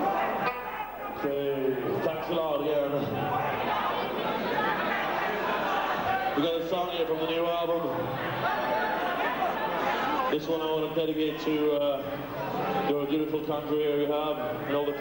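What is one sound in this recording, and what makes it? A man talks loudly into a microphone, heard through loudspeakers.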